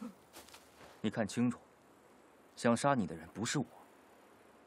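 A man speaks in a low, quiet voice nearby.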